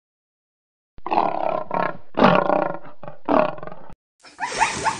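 A lion roars loudly and close by.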